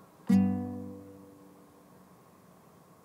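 An acoustic guitar is strummed close by, a chord ringing out and slowly fading.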